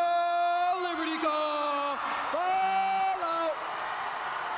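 A man shouts long drawn-out drill commands in a large echoing hall.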